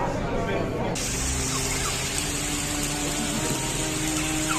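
Floodwater rushes along a street.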